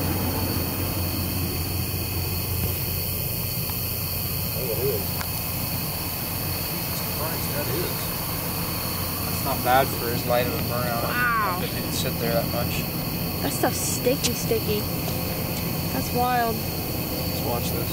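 Young men talk quietly outdoors at night.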